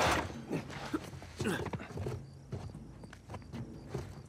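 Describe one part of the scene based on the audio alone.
Hands and feet clank on the rungs of a metal ladder as a man climbs.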